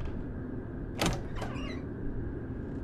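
A wooden door opens with a creak.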